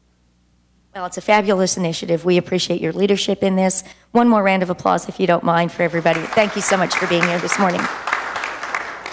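An older woman speaks into a microphone.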